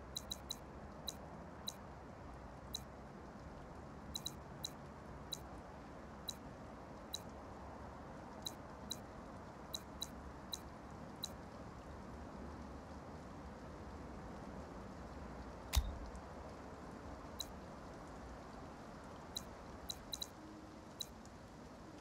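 Short, soft interface clicks sound again and again.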